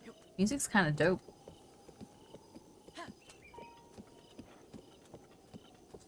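A horse's hooves thud softly as it trots.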